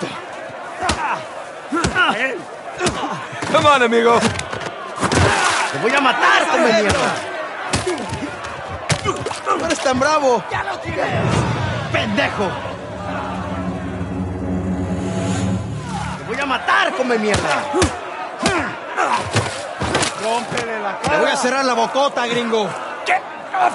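Fists thud in punches.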